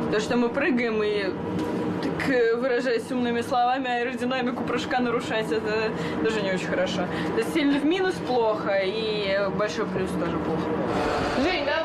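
A young girl speaks calmly, close by.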